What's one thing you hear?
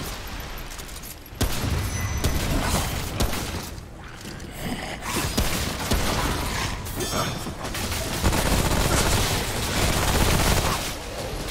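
A man talks into a nearby microphone.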